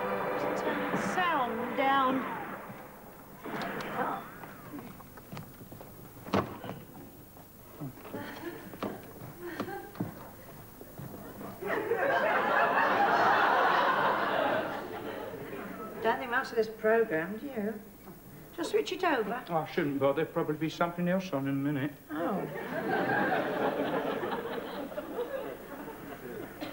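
An elderly woman speaks nearby.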